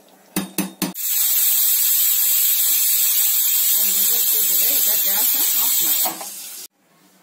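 Steam hisses loudly from a pressure cooker valve.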